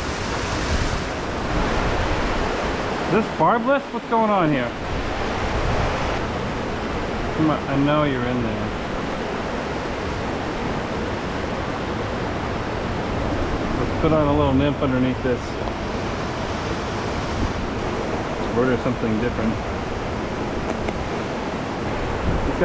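Water rushes steadily over rocks into a pool.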